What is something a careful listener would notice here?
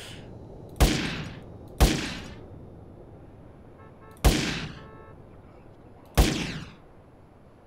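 Gunshots ring out one at a time with a short echo.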